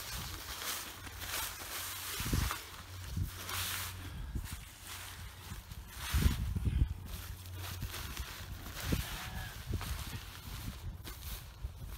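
Nylon fabric rustles and crinkles as it is folded and smoothed.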